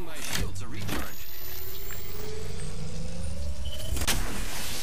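A shield battery charges with a rising electric whine.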